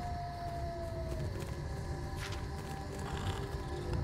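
A page of paper rustles as it turns.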